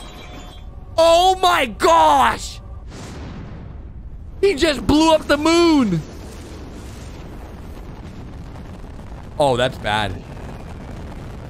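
A young man shouts and screams in amazement.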